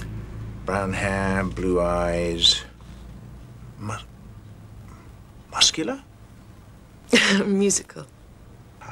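A woman speaks softly and calmly nearby.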